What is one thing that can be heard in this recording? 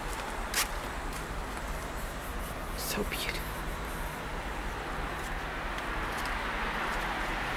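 Traffic hums steadily on a wide street outdoors.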